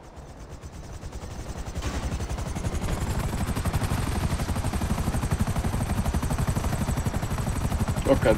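A helicopter's rotor thumps rapidly and grows louder as it lifts off.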